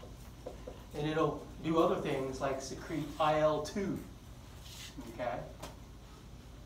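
A man lectures nearby.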